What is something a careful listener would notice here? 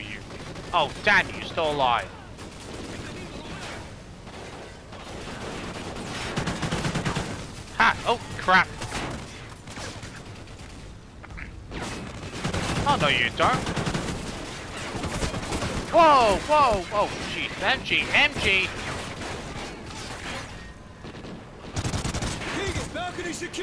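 Rifle shots ring out in sharp bursts.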